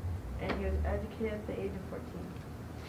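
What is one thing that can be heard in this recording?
A young girl speaks briefly, heard through a microphone.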